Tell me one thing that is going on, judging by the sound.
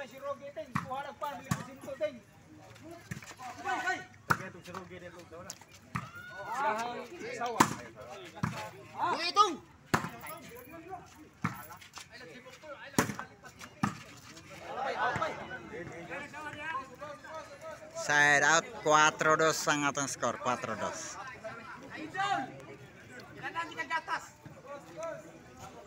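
Young men shout and call out outdoors during a game.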